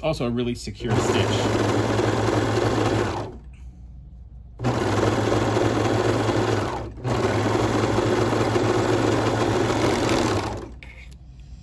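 A serger sews fast with a steady whirring hum.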